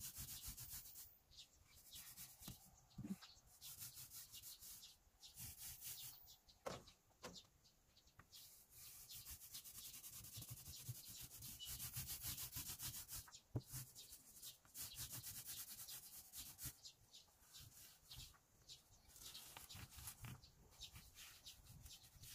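A paint roller rolls primer over siding with a sticky, crackling hiss.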